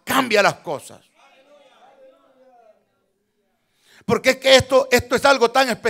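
A man preaches forcefully into a microphone, pausing between bursts of speech.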